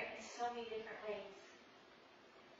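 A woman speaks through a microphone in a large echoing room.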